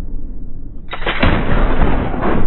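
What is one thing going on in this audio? A gunshot rings out loudly.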